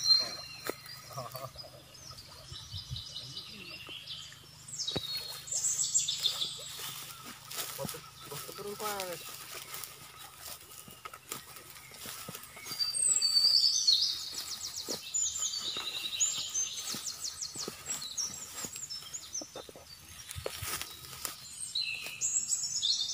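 Water swishes and splashes as a man wades through a shallow stream.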